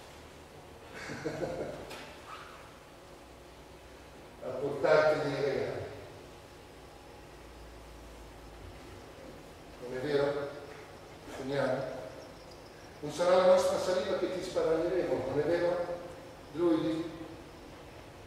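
A man speaks dramatically in short bursts, with a slight echo in a large hall.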